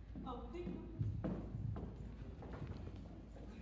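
Footsteps tap on a wooden stage.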